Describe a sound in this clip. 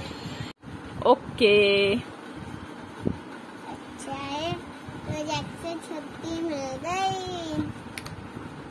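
A young girl speaks brightly and close by.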